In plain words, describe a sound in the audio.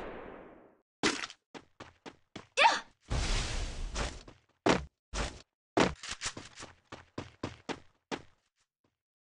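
Walls burst up one after another with sharp crackling thuds.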